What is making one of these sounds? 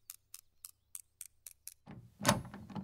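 A lock pick clicks rhythmically in a lock.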